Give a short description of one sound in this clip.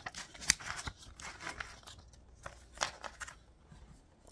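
Paper money rustles and crinkles in hands.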